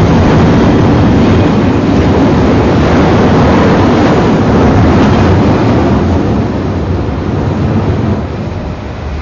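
A train rushes past with a loud, steady roar.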